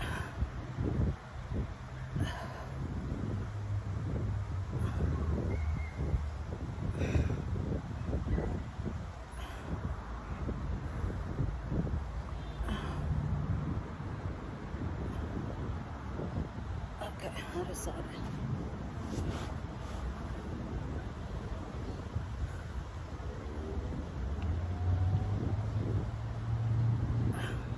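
A young woman talks calmly and close by.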